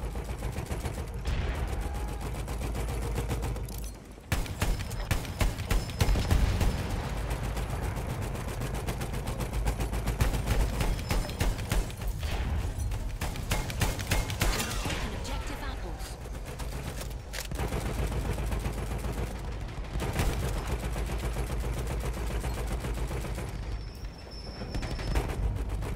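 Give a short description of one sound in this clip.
A heavy machine gun fires rapid bursts of loud, booming shots.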